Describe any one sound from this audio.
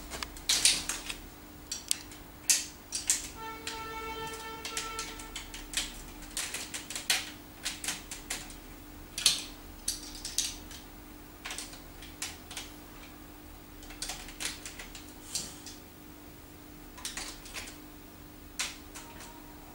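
Plastic building blocks click and clack together.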